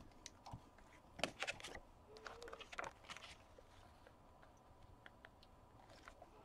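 Paper rustles and taps as a card is handled.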